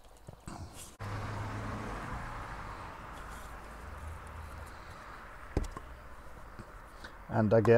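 Grit pours and patters into a plastic bowl.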